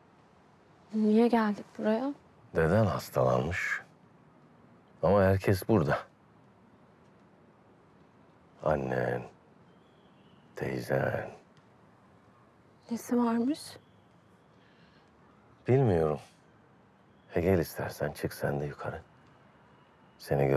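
A middle-aged man speaks quietly and seriously, close by.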